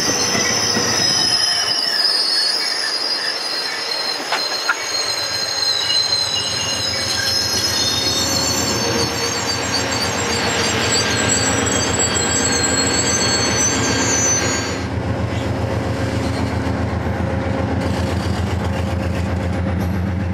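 A passenger train rolls past close by, wheels clattering rhythmically over the rail joints.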